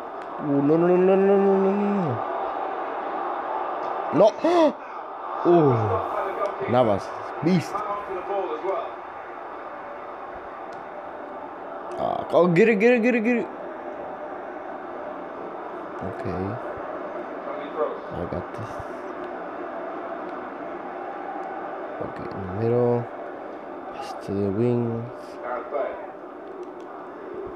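A stadium crowd murmurs steadily through a television speaker.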